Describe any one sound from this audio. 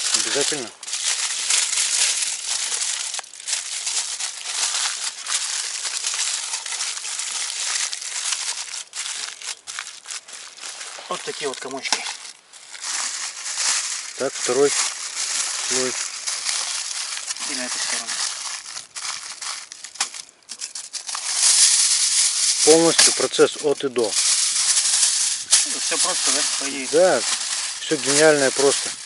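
Aluminium foil crinkles and rustles as hands fold it.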